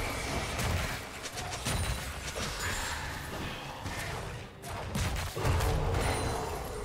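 Magic blasts and weapon hits crackle and boom in a video game battle.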